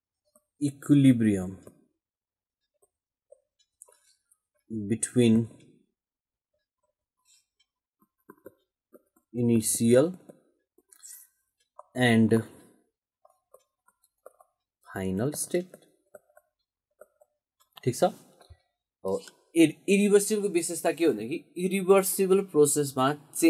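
A man speaks slowly into a close microphone, in short phrases with pauses, then more steadily.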